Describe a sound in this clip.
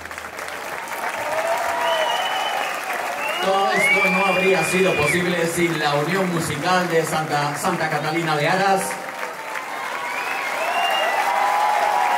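A crowd cheers and whoops with excitement.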